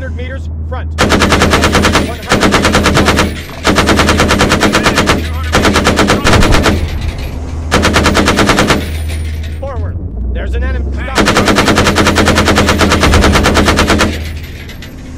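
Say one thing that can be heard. A heavy gun fires in long, rapid bursts.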